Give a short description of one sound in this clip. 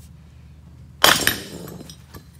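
A boot stomps down on a metal part.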